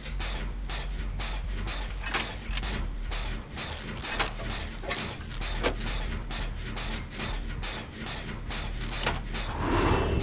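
A generator engine clanks and rattles with rapid mechanical knocking.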